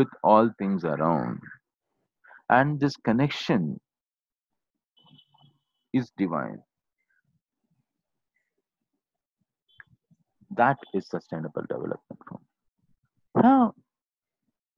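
A middle-aged man speaks calmly in bursts over a close microphone, with pauses.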